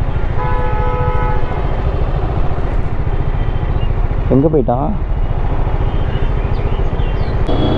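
A motorcycle engine rumbles steadily close by.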